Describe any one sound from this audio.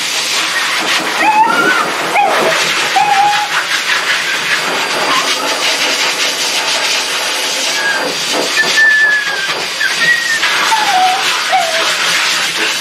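A small dog whines in short high cries.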